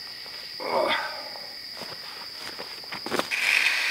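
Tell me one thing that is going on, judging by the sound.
Footsteps scuff on loose dirt.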